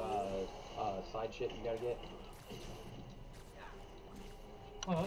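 Punches thud and crash in a video game fight.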